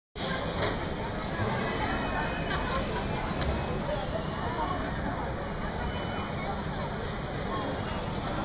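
A swinging amusement ride rumbles and whooshes through the air.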